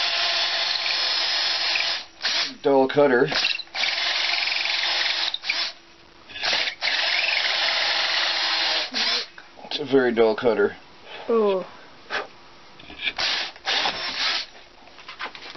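A power drill whirs loudly as a hole saw bores into wood.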